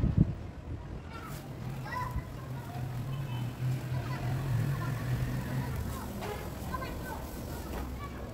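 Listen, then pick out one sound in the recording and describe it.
Molten metal pours from a pot and sizzles into a mould.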